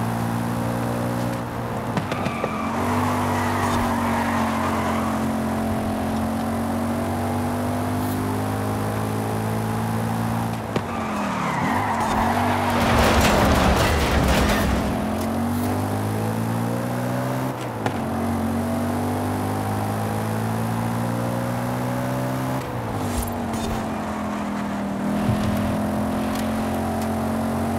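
A car engine roars steadily, shifting gears and revving up and down.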